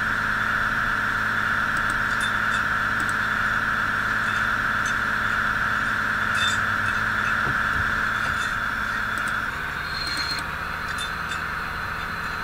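A train engine hums steadily as it rolls along the tracks.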